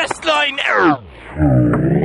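A young man speaks close up, with animation.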